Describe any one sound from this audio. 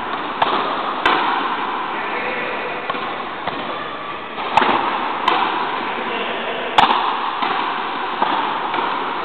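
Rackets smack a ball with sharp cracks, echoing in a large hall.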